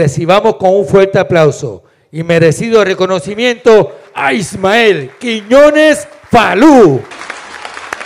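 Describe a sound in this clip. A man announces loudly over a loudspeaker in a large hall.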